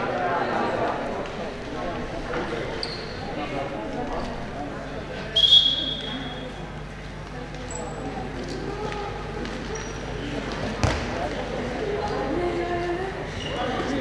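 Young women call out to each other across the court.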